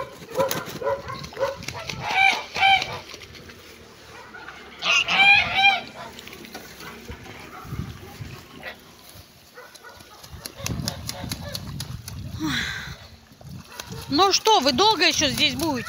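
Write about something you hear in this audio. Geese honk and cackle nearby.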